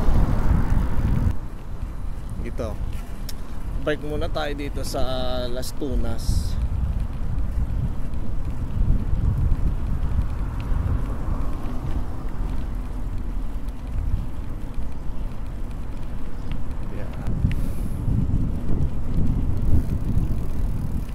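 Bicycle tyres roll on pavement.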